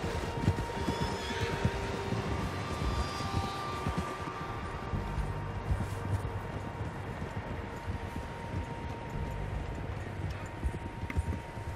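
Horses gallop through snow with muffled hoofbeats.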